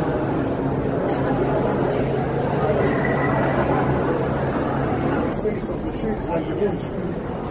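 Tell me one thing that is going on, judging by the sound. A crowd of people chatters in an echoing open space.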